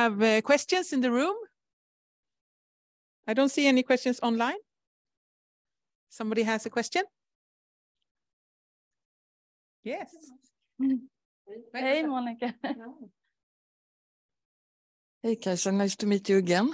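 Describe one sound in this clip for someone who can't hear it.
A woman speaks calmly through a microphone over an online call, in short bursts with pauses.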